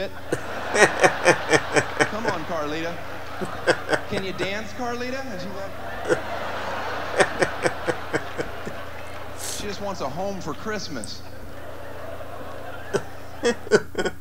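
An older man laughs heartily close by.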